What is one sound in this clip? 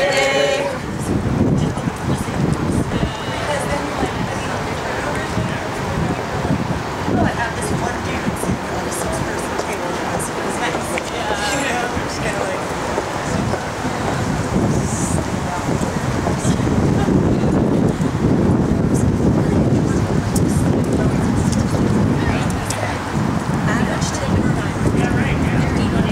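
A group of people walk with footsteps on wet pavement.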